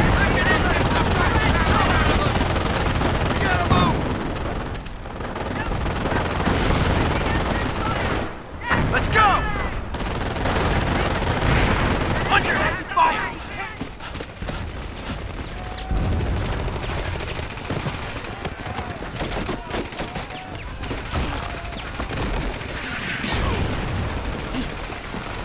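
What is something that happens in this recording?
Gunfire crackles across a battlefield.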